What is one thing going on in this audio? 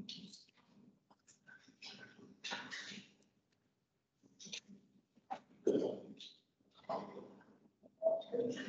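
A man speaks calmly over an online call, with short pauses.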